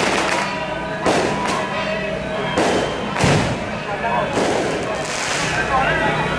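Firecrackers bang one at a time.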